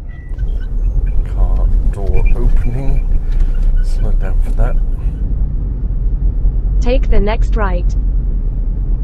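An older man talks calmly inside a car, close to the microphone.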